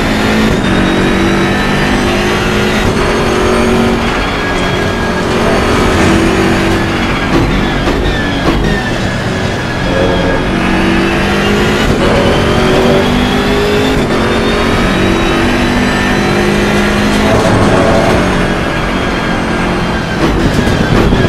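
A racing car engine roars loudly, its pitch rising and falling through the gear changes.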